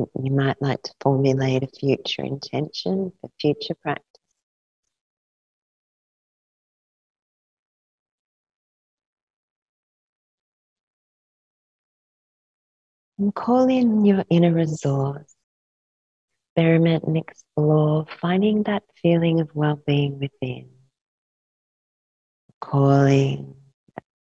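A young woman speaks calmly and slowly close to a microphone, with long pauses.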